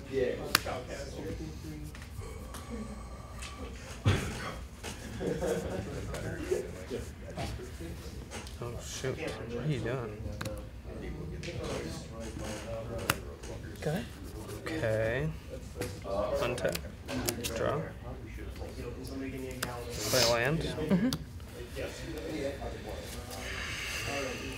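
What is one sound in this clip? Playing cards tap and slide softly on a table.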